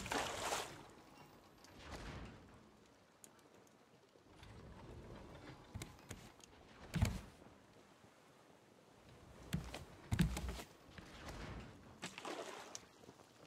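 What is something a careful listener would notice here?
Waves wash softly around a floating raft.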